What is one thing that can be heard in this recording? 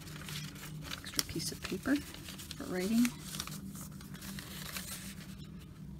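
Paper rustles and crinkles softly as pages are handled.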